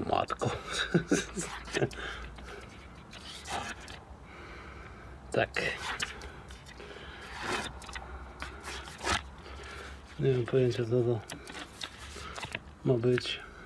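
Stiff cards rustle and flap as they are handled.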